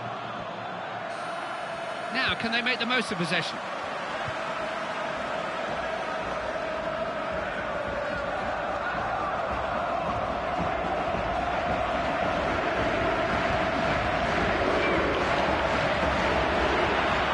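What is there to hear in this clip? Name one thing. A large crowd roars steadily in a stadium, slowly growing louder.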